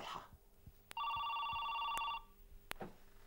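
A telephone rings with a steady electronic trill.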